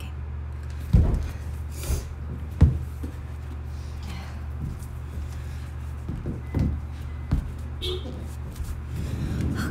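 Feet thump on a padded floor.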